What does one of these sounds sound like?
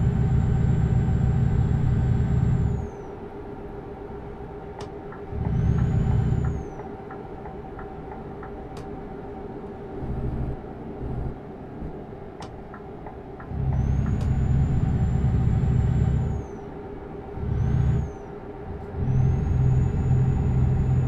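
A truck engine hums steadily, now and then growing louder.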